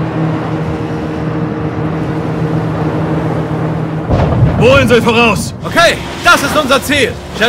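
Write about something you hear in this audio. Waves crash and splash around speeding boats.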